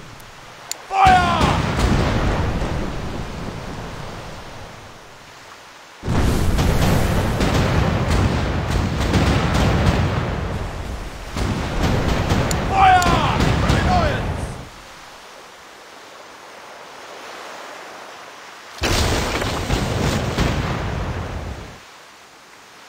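Cannons boom in rumbling volleys.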